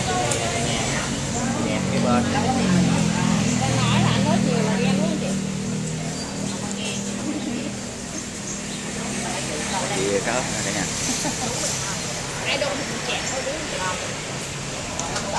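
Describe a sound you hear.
Several women chat nearby.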